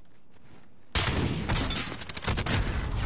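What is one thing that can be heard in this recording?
Gunshots crack close by.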